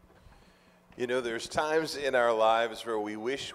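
A man speaks loudly through a microphone.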